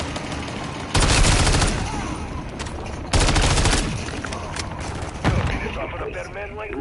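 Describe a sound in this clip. Automatic gunfire bursts out loudly in short rapid volleys.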